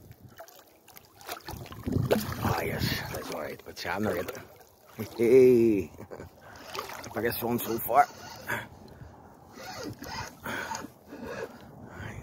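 A fish thrashes and splashes at the surface of the water close by.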